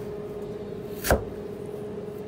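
A knife is set down on a board with a knock.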